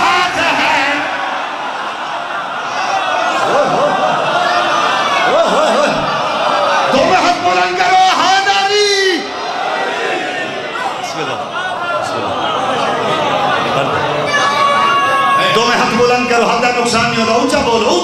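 A crowd of men chant along loudly.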